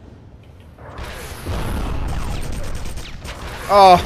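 Gunfire echoes down a tunnel.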